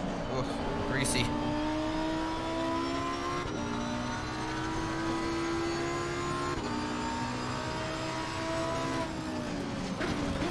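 A racing car engine roars, rising in pitch through repeated gear changes.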